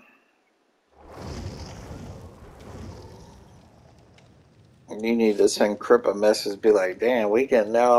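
A campfire crackles softly.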